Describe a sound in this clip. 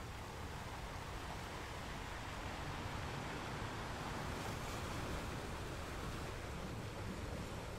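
Ocean waves roll in and crash steadily against rocks.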